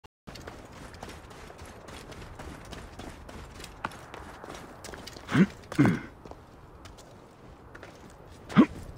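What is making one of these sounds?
Footsteps crunch quickly over dry ground.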